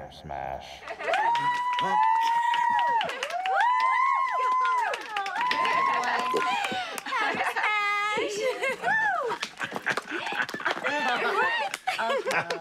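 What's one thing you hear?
Young women clap their hands.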